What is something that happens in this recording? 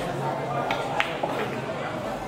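Pool balls clack together.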